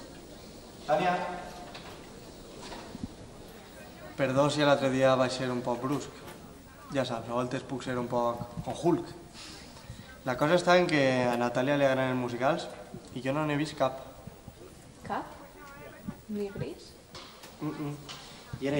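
A young woman answers quietly, close by.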